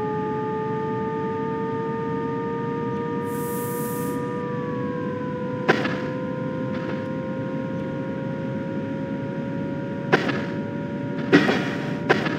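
An electric train's motors hum with a steady whine that slowly rises in pitch.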